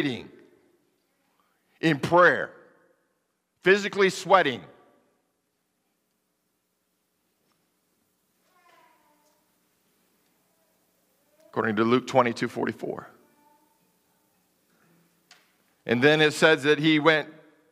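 A man speaks with animation through a microphone in a large echoing hall, pausing between phrases.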